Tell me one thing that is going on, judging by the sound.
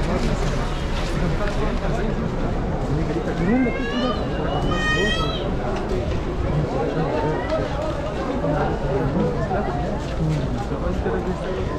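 Many footsteps shuffle on a paved street.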